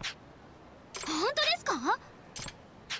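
A young woman speaks in a bright, cheerful voice.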